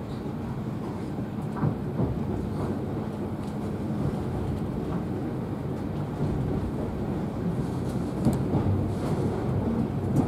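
A train rumbles and rattles steadily along the tracks from inside a carriage.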